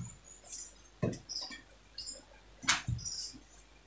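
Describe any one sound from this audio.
A wooden ruler knocks softly against a table.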